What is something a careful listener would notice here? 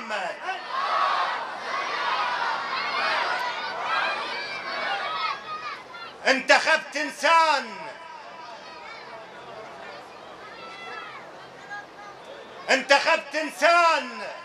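A man recites forcefully into a microphone, his voice carried over loudspeakers in a reverberant hall.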